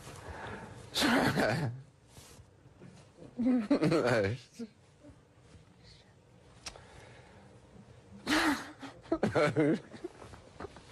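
A middle-aged man laughs in bursts.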